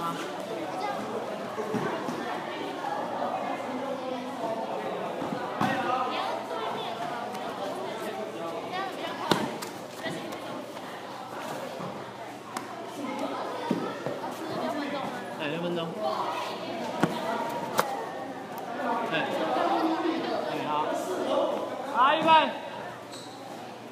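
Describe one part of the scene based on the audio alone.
Young men chatter and call out in an echoing hall.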